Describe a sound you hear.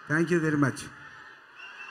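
A man shouts into a microphone over loudspeakers.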